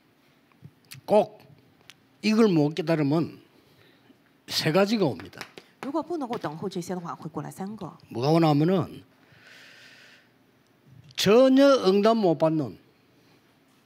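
An elderly man speaks with emphasis through a microphone.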